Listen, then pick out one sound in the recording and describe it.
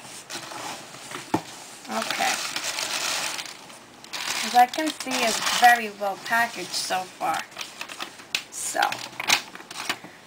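Tissue paper rustles and crinkles.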